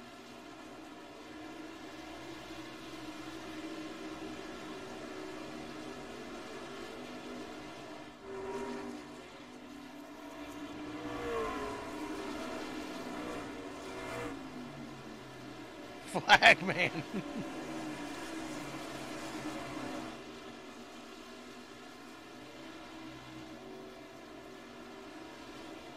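Racing truck engines drone steadily as they speed around a track.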